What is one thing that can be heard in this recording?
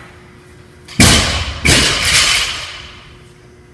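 A heavy barbell crashes onto the floor and rattles.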